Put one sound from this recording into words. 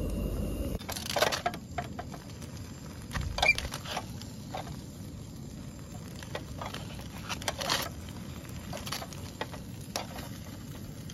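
Metal tongs tap and scrape against foil.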